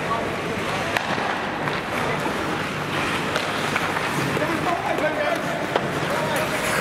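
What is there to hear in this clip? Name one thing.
Skates scrape and hiss across the ice in a large echoing rink.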